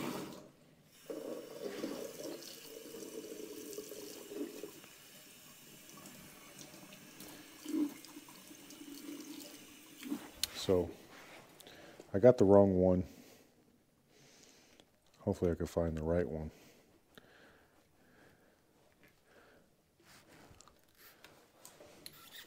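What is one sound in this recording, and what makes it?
Metal tools clink and scrape against a faucet.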